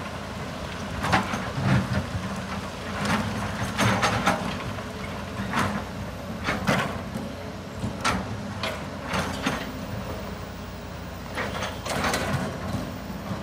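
Rocks clatter and thud as an excavator bucket digs and dumps.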